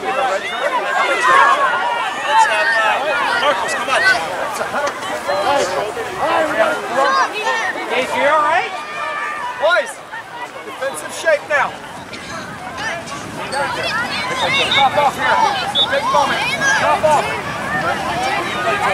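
Many children's voices chatter and call out outdoors.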